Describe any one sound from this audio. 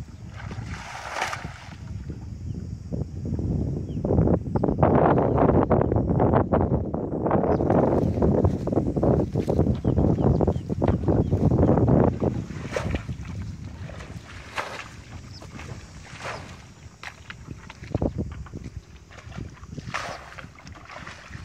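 Water splashes as a person wades through a flooded field.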